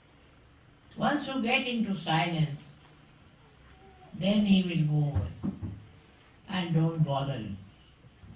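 An elderly woman speaks calmly and slowly into a microphone, pausing between phrases.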